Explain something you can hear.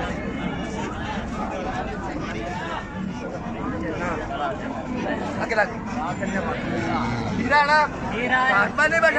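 Several men talk loudly over one another in a busy outdoor crowd.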